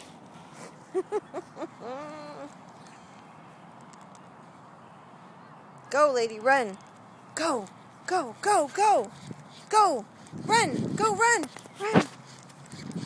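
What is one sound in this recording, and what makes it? A small dog yelps and whines.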